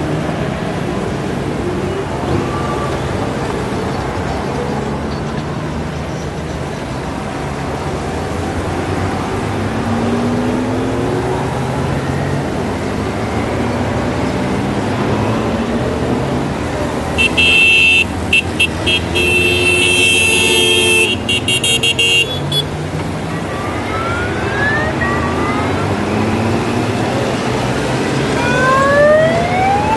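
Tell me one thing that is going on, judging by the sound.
Motorcycle engines rumble steadily as a long line of bikes rolls past close by.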